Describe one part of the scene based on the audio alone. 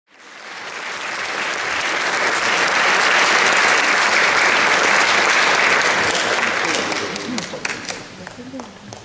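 A large audience applauds in an echoing hall, and the applause slowly dies away.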